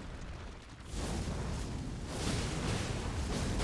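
Flames roar in a burst of fire.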